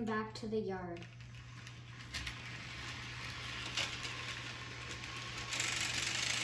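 A toy train rattles and clicks along its track.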